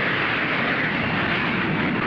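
Jet planes roar overhead.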